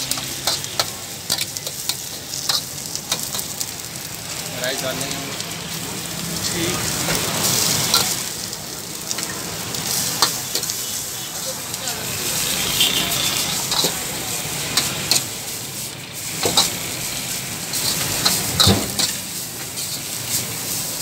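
A metal ladle scrapes and clanks against a wok.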